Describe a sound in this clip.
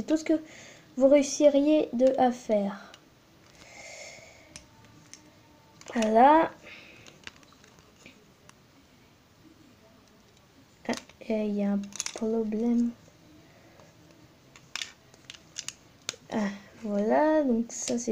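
Plastic toy bricks click and snap together close by.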